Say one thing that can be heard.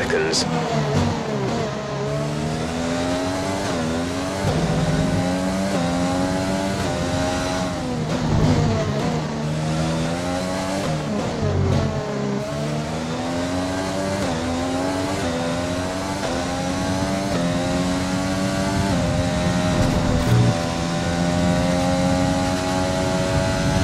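A racing car engine screams, revving up through the gears and dropping in pitch under braking.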